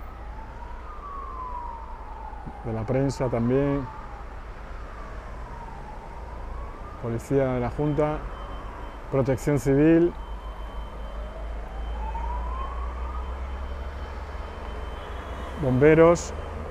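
A siren wails up and down nearby.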